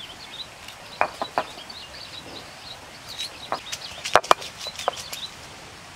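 Small onions tap and knock against a stone slab.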